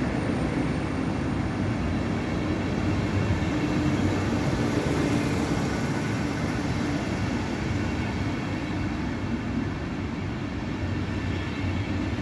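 Passenger train coaches roll past along a platform, wheels rumbling on the rails.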